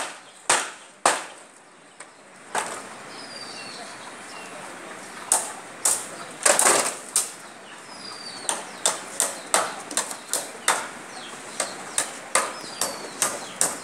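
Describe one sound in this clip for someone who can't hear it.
Metal clangs and knocks again and again.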